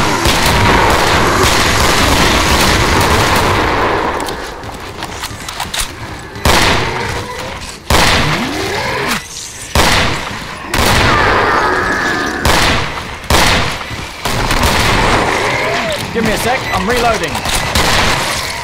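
A monster growls and shrieks.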